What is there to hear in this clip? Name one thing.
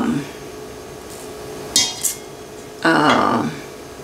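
Ground spice pours softly from a spoon into a metal bowl.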